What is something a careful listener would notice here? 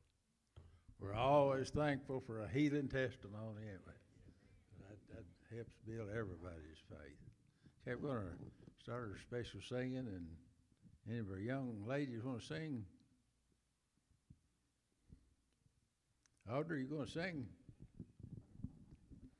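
An elderly man speaks calmly into a microphone, heard through loudspeakers in an echoing hall.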